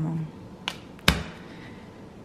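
A small paper packet taps onto a table.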